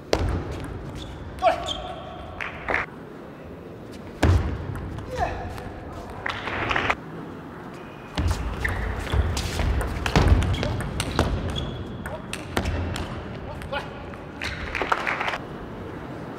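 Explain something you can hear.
Shoe soles squeak sharply on the floor.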